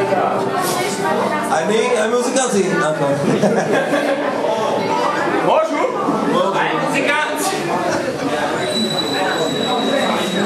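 A crowd of men and women chatters and shouts loudly in an echoing hall.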